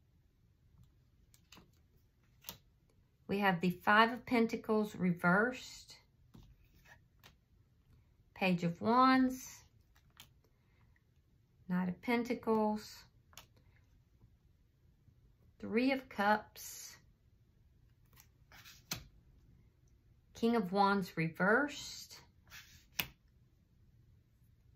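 Playing cards slide and tap softly on a wooden table.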